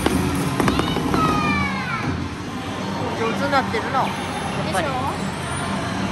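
An arcade game plays bright electronic jingles and chimes.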